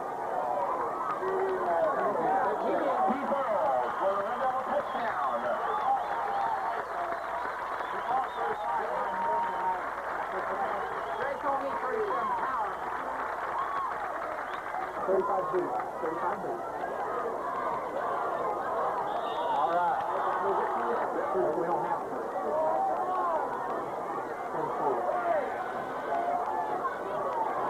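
A crowd of spectators talks and calls out at a distance outdoors.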